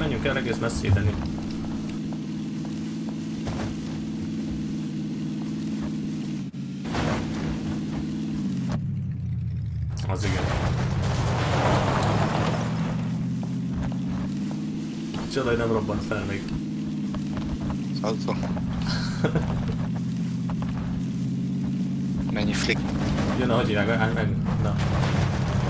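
A car engine hums steadily, rising and falling in pitch as it drives.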